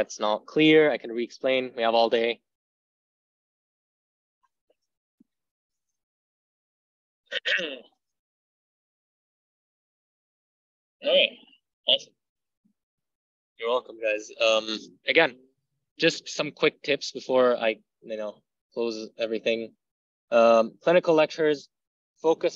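A young man speaks calmly and explains things through an online call microphone, with pauses.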